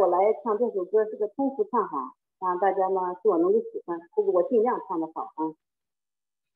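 A middle-aged woman speaks cheerfully over an online call.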